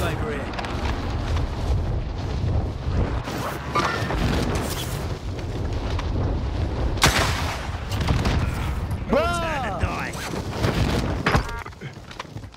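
Wind rushes loudly during a fast fall through the air.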